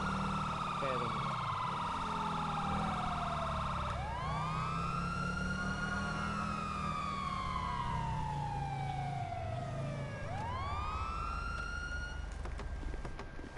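A car engine hums as the car drives.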